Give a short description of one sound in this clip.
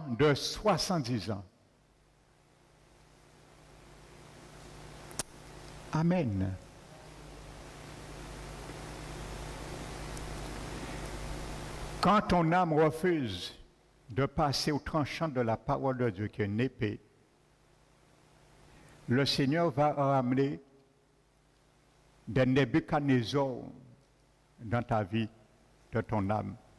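A man preaches with animation through a microphone in an echoing hall, pausing between phrases.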